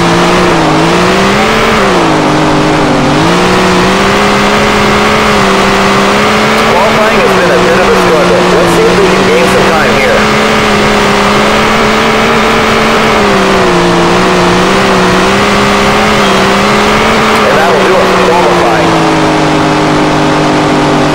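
A race car engine roars steadily, its pitch rising and dipping with the throttle.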